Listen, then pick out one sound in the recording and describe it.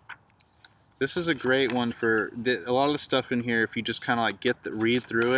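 A young man reads aloud clearly, close by.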